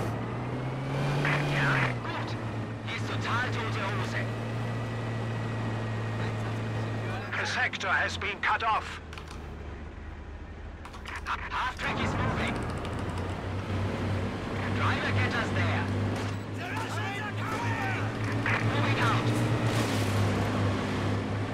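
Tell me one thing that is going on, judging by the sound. A man talks casually close to a microphone.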